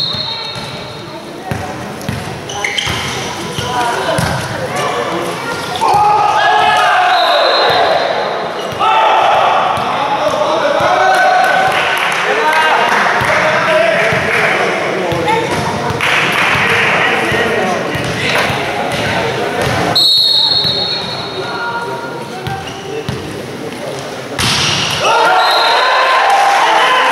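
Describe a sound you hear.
A volleyball is struck with sharp slaps during a rally.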